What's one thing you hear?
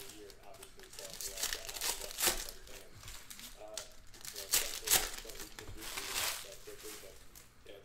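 Plastic wrappers crinkle and tear as packs are opened.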